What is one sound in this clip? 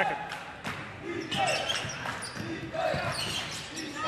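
A basketball bounces on the floor as a player dribbles.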